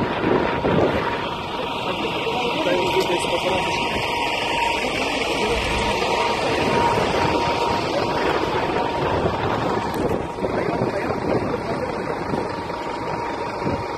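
Wind blows hard against a microphone outdoors.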